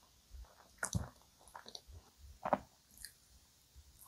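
A young woman bites into soft pastry close to the microphone.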